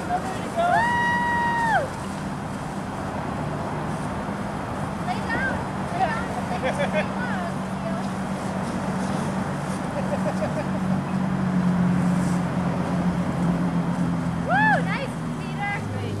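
Young children squeal and shriek playfully outdoors.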